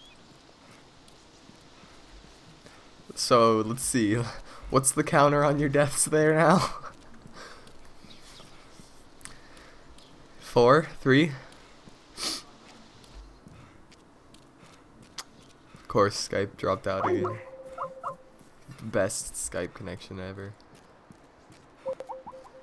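Footsteps run over grass and dry ground.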